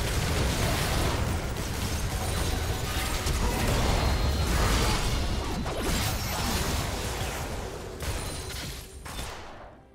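Game impacts thud and clash rapidly.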